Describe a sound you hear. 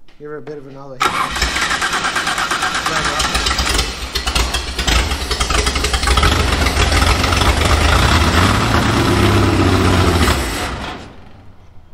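An engine roars loudly as its throttle is worked.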